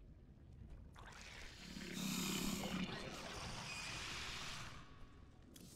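A creature growls and hisses.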